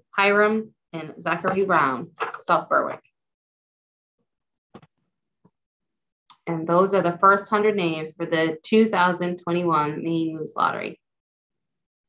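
A woman reads out calmly over an online call.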